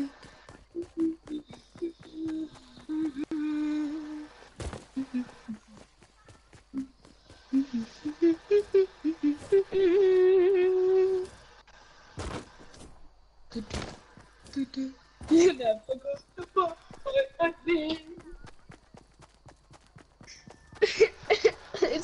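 Quick footsteps run through grass.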